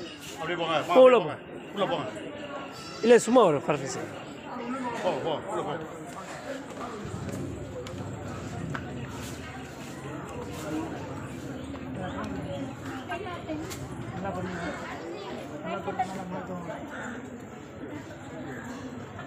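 A crowd of girls chatters outdoors.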